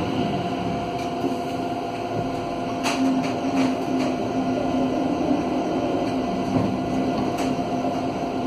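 A tram's cabin rattles and clicks over the rails.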